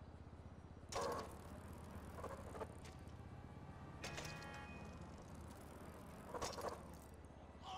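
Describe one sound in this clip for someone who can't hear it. A bicycle lands with a sudden clattering thud.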